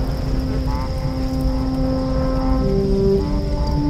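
A large fire crackles and roars.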